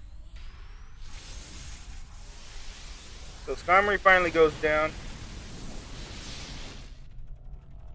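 An electric blast crackles and roars.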